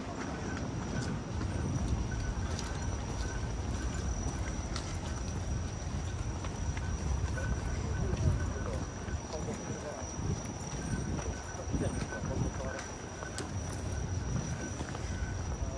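Footsteps tap on paving stones.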